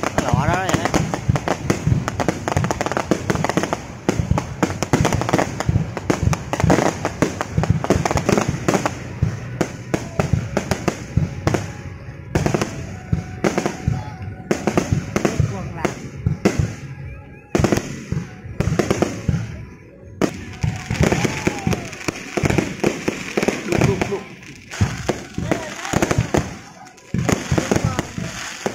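Fireworks crackle and pop rapidly overhead.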